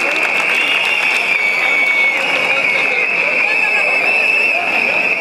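A large crowd of young people chatters and shouts outdoors.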